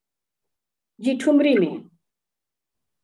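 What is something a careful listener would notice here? A middle-aged woman speaks briefly over an online call.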